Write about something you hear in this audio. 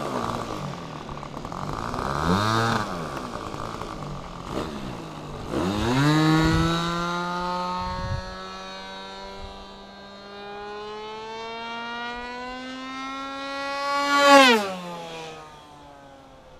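A model plane's electric motor whines, rising and falling in pitch as it passes close by.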